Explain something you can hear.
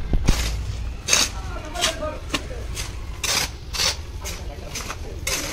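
A shovel scrapes through a sand and cement mix on a concrete floor.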